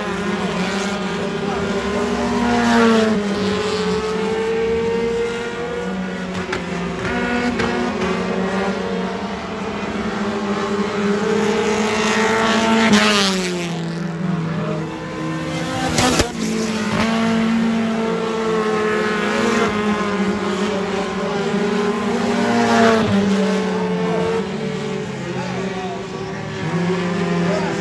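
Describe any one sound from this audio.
Race car engines roar around a dirt track.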